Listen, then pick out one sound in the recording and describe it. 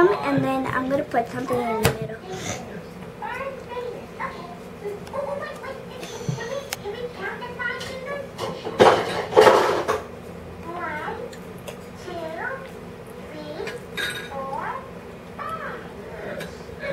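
A young child talks quietly close by.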